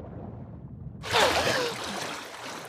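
A girl bursts out of water with a splash.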